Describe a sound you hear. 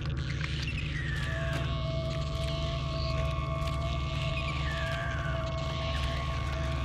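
Light footsteps patter on a hard floor.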